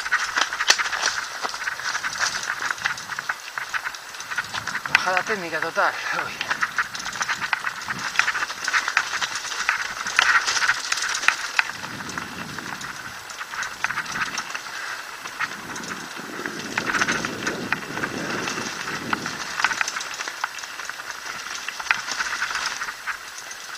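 Mountain bike tyres clatter over rocks and dry leaves on a fast downhill trail.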